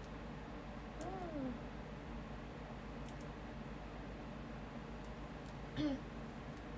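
A young woman makes short vocal sounds close to a microphone.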